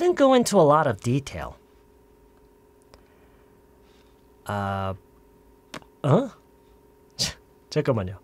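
A man speaks calmly into a microphone in short bursts with pauses.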